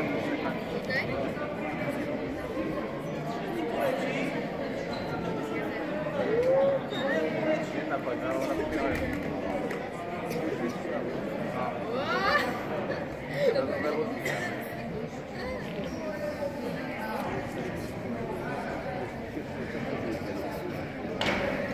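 Young men and boys talk together in a large echoing hall.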